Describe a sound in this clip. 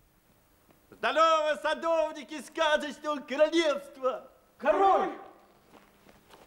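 A middle-aged man speaks loudly and with animation.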